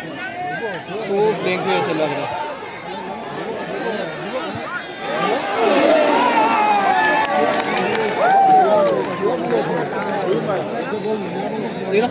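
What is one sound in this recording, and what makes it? A large outdoor crowd chatters, shouts and cheers loudly throughout.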